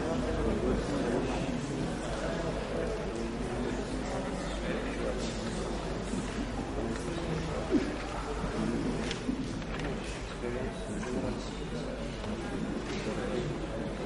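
A man speaks to an audience through a microphone in a large echoing hall.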